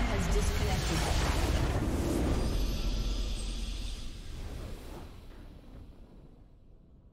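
A triumphant fanfare swells and then fades away.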